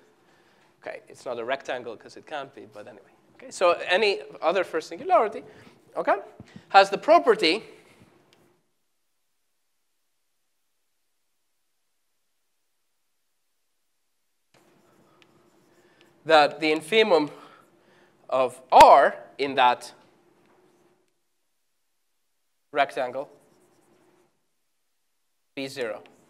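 A man lectures calmly through a microphone, in pauses.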